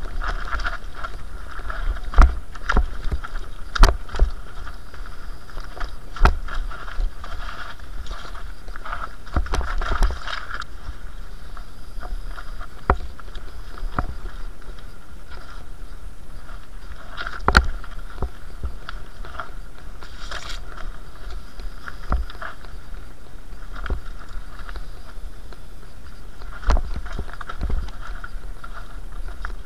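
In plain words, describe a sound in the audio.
A bicycle frame rattles and clunks over bumps.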